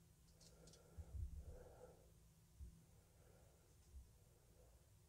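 A folding knife blade clicks softly into place.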